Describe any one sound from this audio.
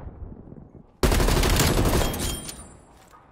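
Rapid gunfire rattles loudly at close range.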